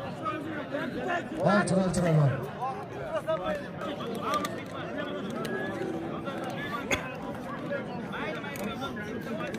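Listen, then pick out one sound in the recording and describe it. A large outdoor crowd chatters and calls out.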